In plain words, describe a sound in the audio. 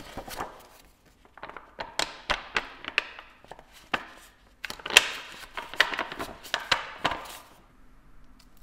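A plastic sheet crinkles and crackles as hands flex it.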